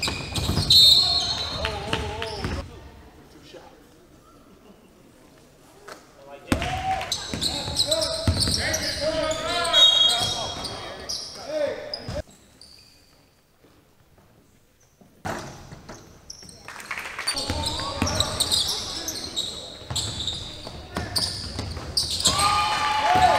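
Young men shout and call out in a large echoing gym.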